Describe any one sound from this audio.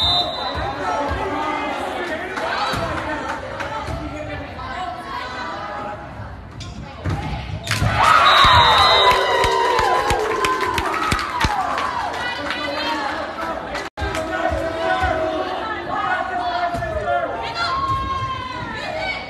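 A volleyball is hit with sharp smacks.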